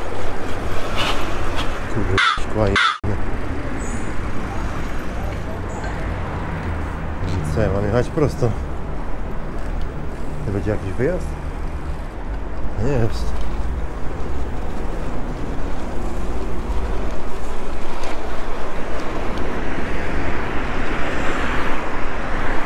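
Bicycle tyres roll over paving stones.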